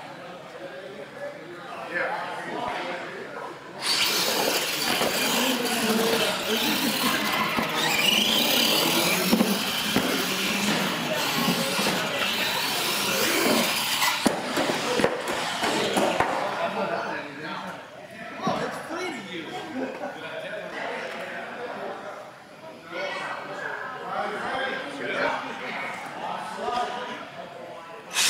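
Small electric motors whine as toy trucks race across a hard floor.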